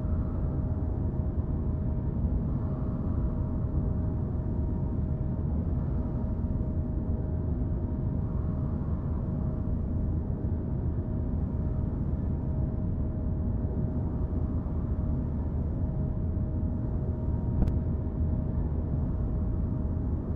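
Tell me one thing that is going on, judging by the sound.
A drill rumbles and hums steadily against rock.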